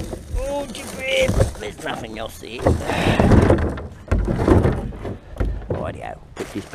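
A plastic wheelie bin thumps and rattles as it is tipped.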